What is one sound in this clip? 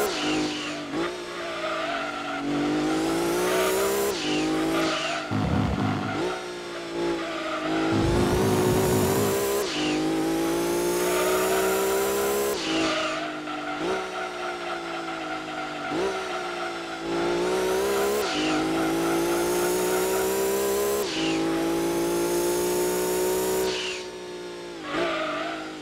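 A racing car engine revs high, rising and dropping as gears shift.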